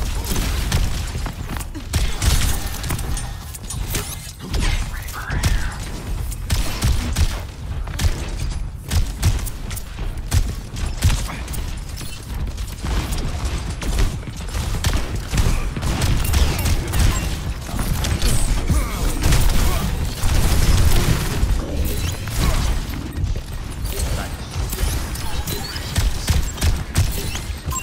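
A video game gun fires in rapid bursts.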